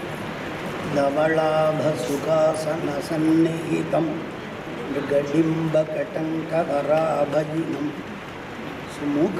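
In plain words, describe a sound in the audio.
A middle-aged man sings a slow melodic chant into a microphone.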